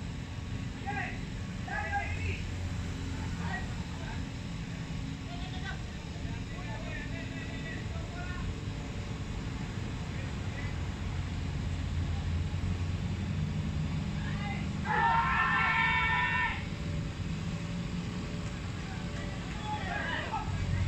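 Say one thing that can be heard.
Men shout to each other from a distance across an open field.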